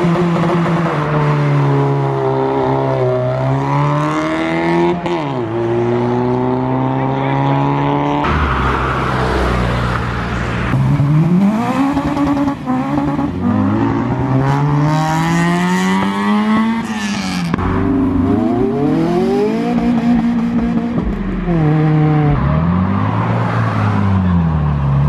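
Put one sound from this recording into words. Loud car engines roar and rev up and down as cars pass close by.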